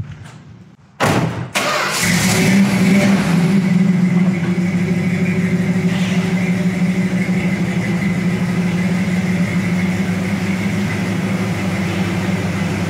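A car engine starts with a roar and settles into a deep, steady rumbling idle.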